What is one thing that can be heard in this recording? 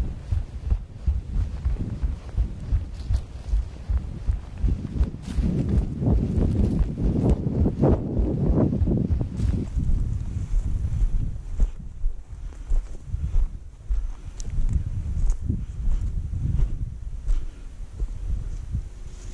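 Footsteps crunch on dry grass and stony ground.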